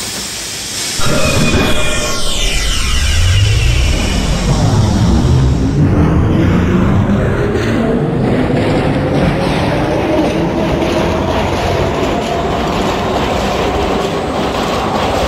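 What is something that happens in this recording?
A subway train's motors whine and rise in pitch as the train pulls away.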